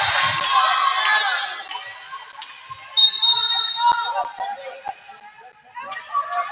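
Young women shout and call out across a large echoing gym.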